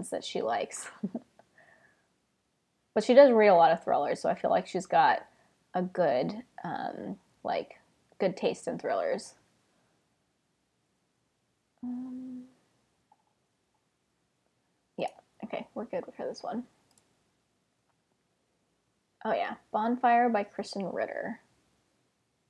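A woman talks calmly and closely into a microphone, in short bursts with pauses.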